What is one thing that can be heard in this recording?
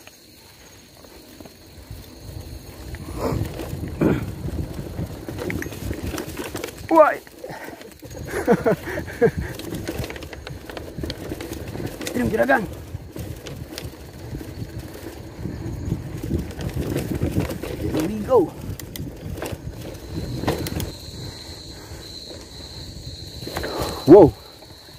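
Wind buffets past a moving rider.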